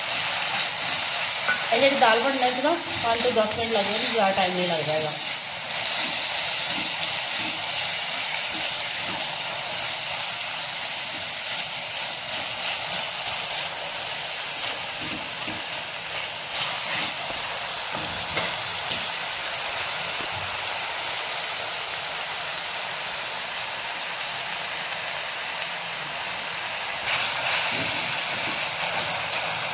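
A spatula scrapes and stirs against a metal pan.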